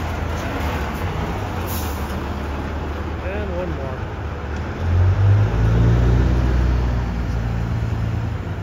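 Cars drive past on the street.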